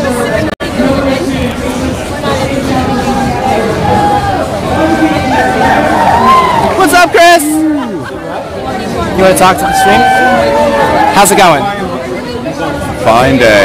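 A middle-aged man speaks close by, raising his voice over the crowd.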